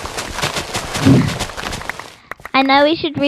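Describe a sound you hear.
Leafy plants snap and rustle as they are broken.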